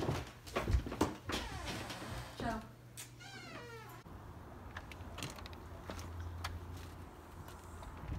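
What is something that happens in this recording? A door rattles and creaks open.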